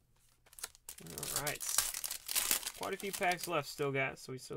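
Plastic card sleeves rustle and crinkle.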